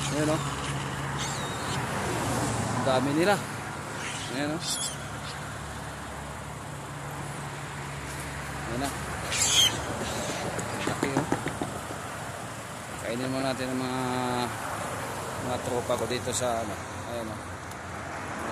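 A man talks nearby inside a car.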